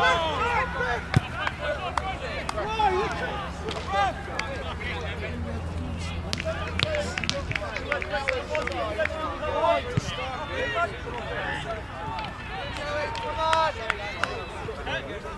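Young players shout and call out to each other across an open pitch.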